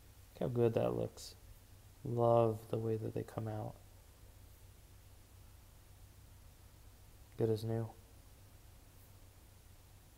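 A cloth rubs softly against a watch.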